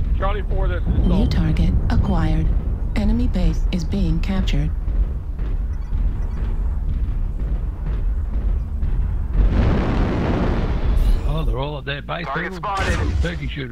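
Laser weapons fire in short bursts.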